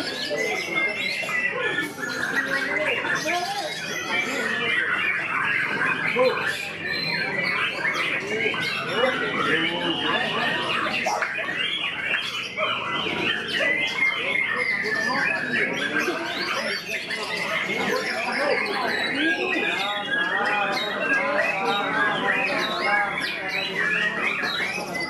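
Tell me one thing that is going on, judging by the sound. A songbird sings loud, varied, warbling phrases close by.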